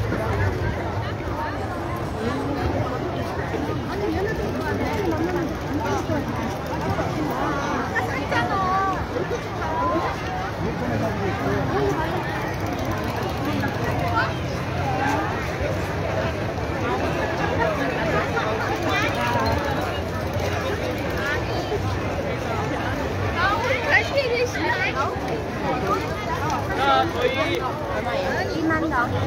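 A large crowd chatters all around outdoors.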